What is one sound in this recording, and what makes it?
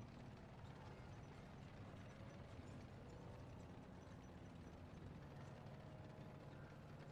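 A heavy tank engine rumbles steadily, heard from inside.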